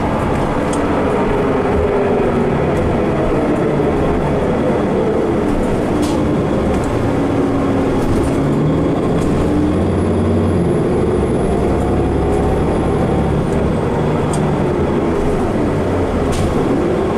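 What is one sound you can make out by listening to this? A bus rattles and creaks over the road.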